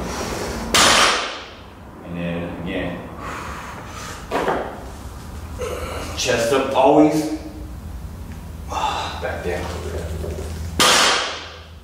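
A barbell loaded with weights thuds down onto the floor.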